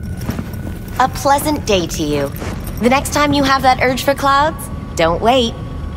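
A young woman speaks calmly and pleasantly.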